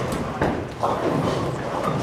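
A bowling ball rolls and rumbles down a lane.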